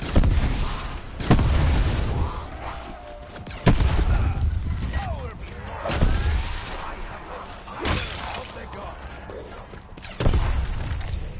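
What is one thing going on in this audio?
A heavy weapon fires loud booming blasts at intervals.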